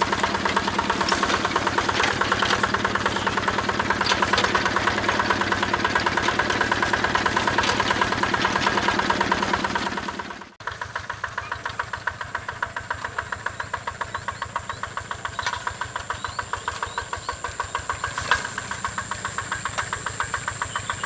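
A small diesel engine chugs steadily close by.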